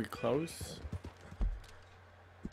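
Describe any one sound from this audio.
Horse hooves thud on a grassy track.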